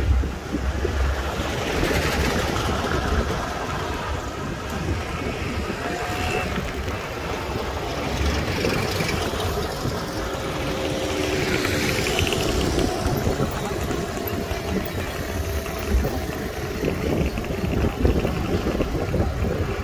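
Tyres hum steadily on the road surface.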